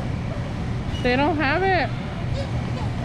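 A child calls out briefly nearby.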